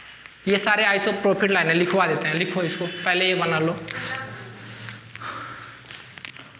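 A man speaks clearly and with animation, close by.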